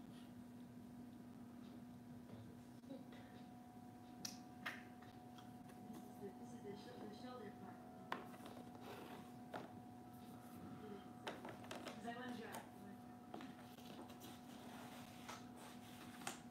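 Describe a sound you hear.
Cardboard pieces scrape and tap on a hard floor.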